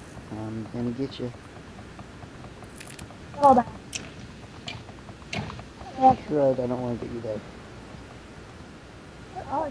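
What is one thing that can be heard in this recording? A sword strikes a zombie with sharp thuds.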